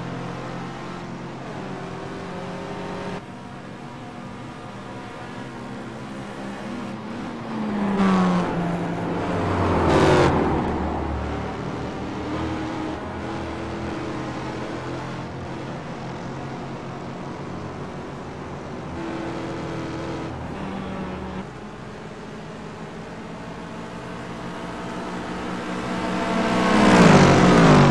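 Racing car engines drone and whine steadily.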